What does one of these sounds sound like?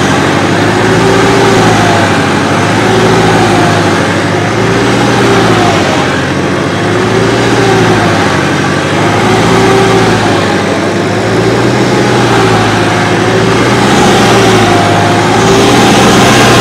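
A tractor engine runs with a steady diesel rumble.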